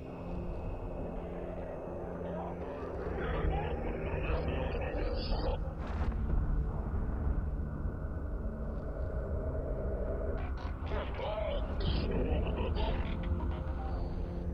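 A deep spaceship rumble hums steadily.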